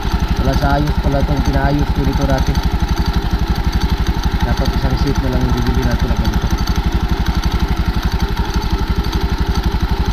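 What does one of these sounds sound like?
A motorcycle engine idles with a steady, rapid putter.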